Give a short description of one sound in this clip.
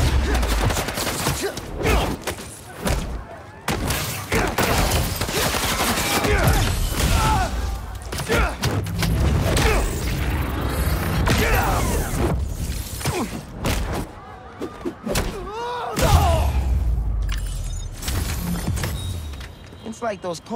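Punches and kicks land with heavy thuds during a fight.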